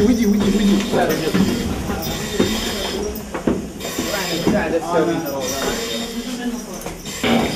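Men talk and call out nearby, echoing in a stairwell.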